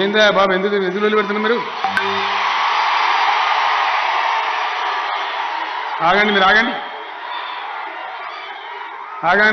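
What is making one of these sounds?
A large crowd cheers and applauds.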